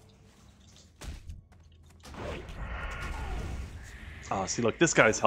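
A magic spell whooshes and crackles.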